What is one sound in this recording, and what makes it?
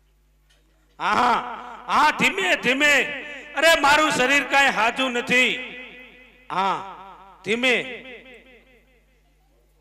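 A man sings loudly through a loudspeaker in long, wavering lines.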